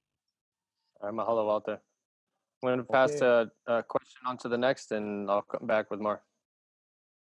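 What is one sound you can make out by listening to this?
A young man speaks over an online call.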